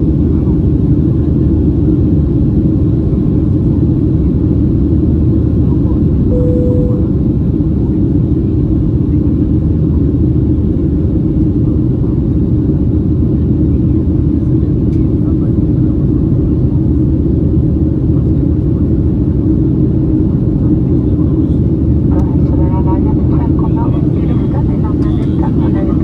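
Jet engines roar steadily inside an airplane cabin in flight.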